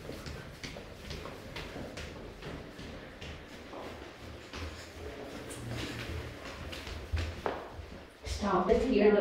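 Footsteps thud quickly up stairs.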